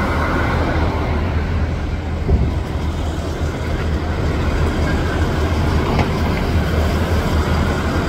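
Outdoors in wind, city traffic rumbles steadily.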